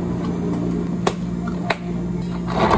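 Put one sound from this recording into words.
Plastic lids snap onto cups.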